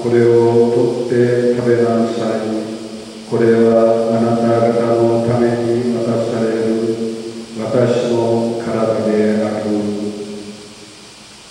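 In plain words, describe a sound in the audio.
An elderly man chants in a steady singing voice through a microphone, in an echoing hall.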